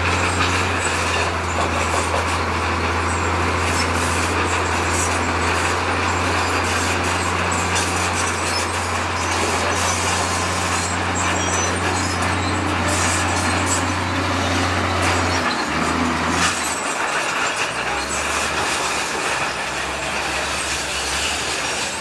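Rocks and dirt scrape and tumble under a bulldozer blade.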